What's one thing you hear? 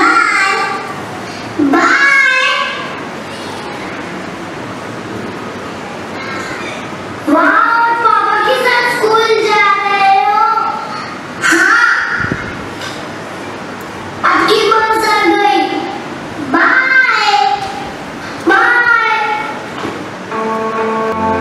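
Young boys speak loudly in turn in an echoing hall.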